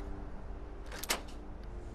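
A lock turns and snaps with a sharp metallic click.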